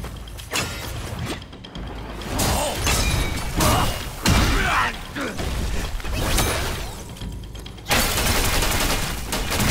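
A large creature roars.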